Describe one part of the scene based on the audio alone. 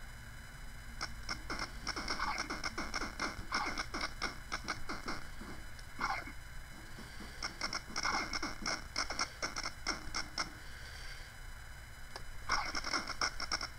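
Rapid gunshots crack in bursts.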